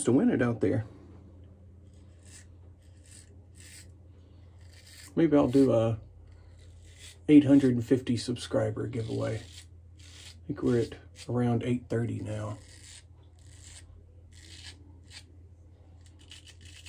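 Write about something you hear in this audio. A razor scrapes through stubble in short strokes.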